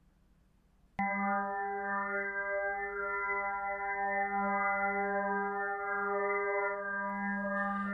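A steady electronic chord of layered tones drones with a slight wavering.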